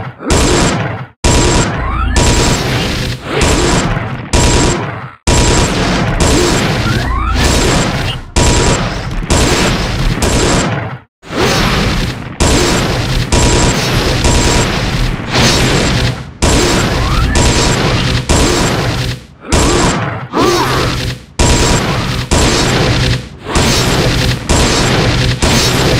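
Weapons clash and strike in a busy battle.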